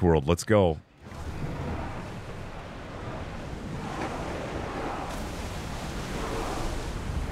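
Waves rush and splash against a ship's hull.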